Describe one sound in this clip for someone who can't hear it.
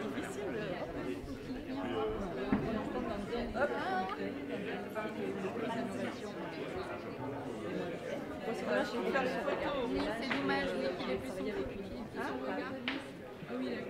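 An elderly woman talks and laughs with animation nearby.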